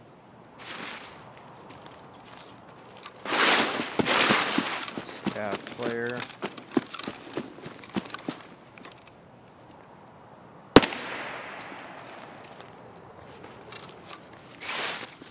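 Footsteps rustle through grass and leafy bushes.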